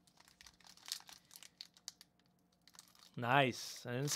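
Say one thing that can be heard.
A foil card pack crinkles and tears in someone's hands.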